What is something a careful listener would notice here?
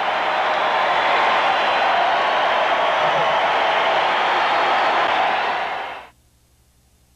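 A large crowd cheers and applauds loudly in a huge arena, then the sound fades out.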